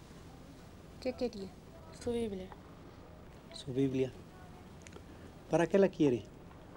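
A man speaks calmly up close.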